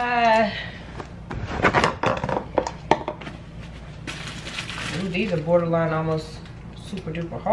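Plastic wrapping crinkles and rustles in a woman's hands.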